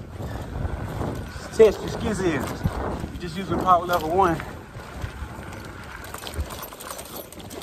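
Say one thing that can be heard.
Bicycle tyres roll and crunch over a bumpy dirt trail.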